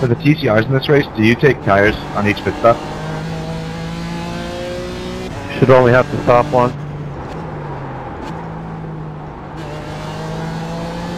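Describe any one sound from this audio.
A racing car engine drones steadily, its pitch slowly rising and falling.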